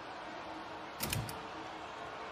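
A door handle rattles.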